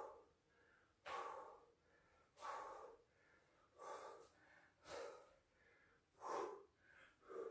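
A man exhales hard in a steady rhythm.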